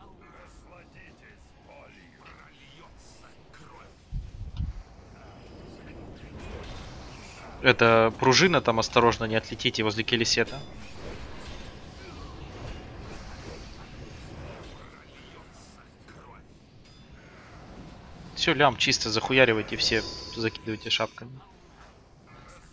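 Battle sound effects of spells and strikes play steadily.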